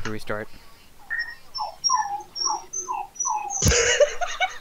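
An electronic alert chirps in quick repeated rising notes.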